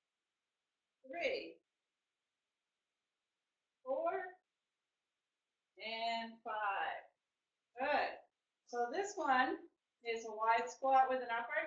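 A woman speaks with energy, close by, in short phrases.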